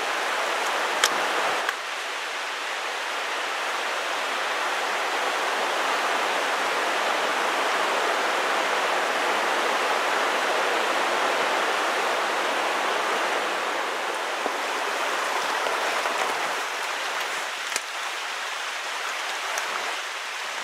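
Boots crunch on a rocky trail.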